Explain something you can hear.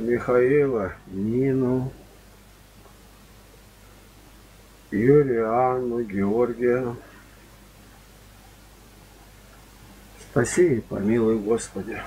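Two men chant together close by in short sung phrases.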